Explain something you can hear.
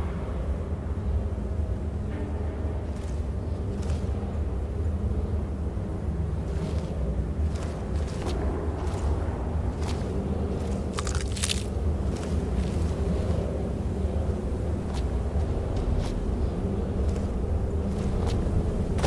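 Footsteps scuff on stone and gravel.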